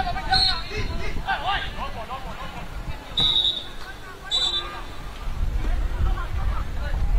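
Football players shout to each other across an open pitch.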